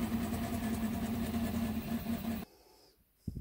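A 3D printer hums steadily with whirring motors.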